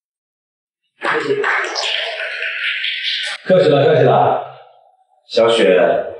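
A second man speaks calmly close by.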